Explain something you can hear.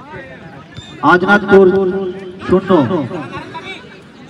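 A crowd of spectators cheers loudly and briefly.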